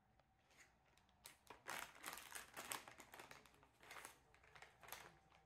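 A cloth wipes and rustles across a tabletop.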